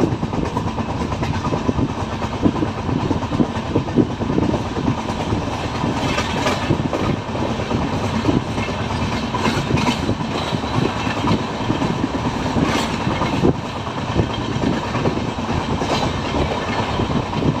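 A train rumbles steadily along the tracks, heard from an open window.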